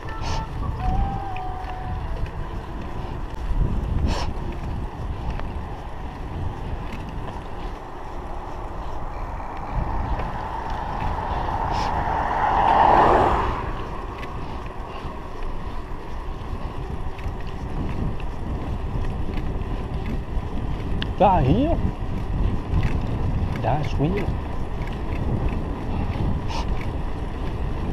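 Wind rumbles and buffets as a bicycle rides along a paved road.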